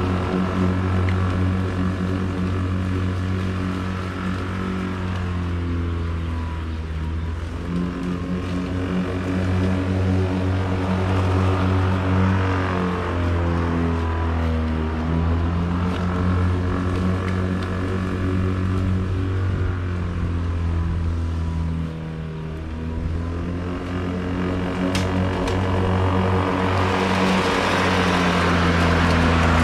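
A lawn mower engine drones steadily, rising and falling as the mower moves closer and farther away.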